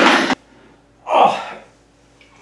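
A young man speaks loudly, close by.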